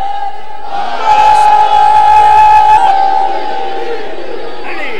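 A crowd of men shouts together in unison.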